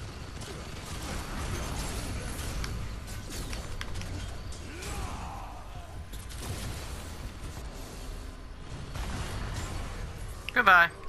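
Explosions boom and crackle in a fight.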